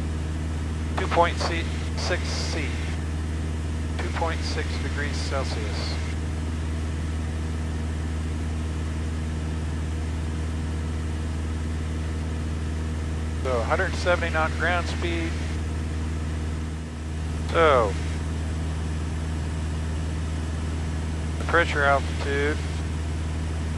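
A middle-aged man speaks calmly through a headset microphone.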